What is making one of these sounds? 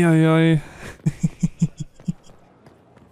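Footsteps run quickly across a hard stone floor.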